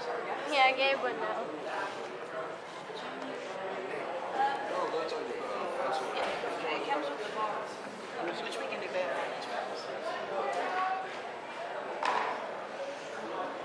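A crowd of adults chatters indoors in a busy hall.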